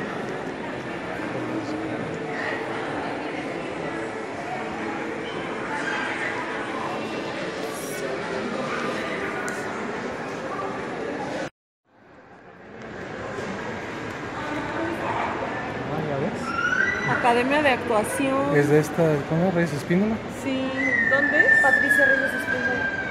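A crowd murmurs, echoing through a large indoor hall.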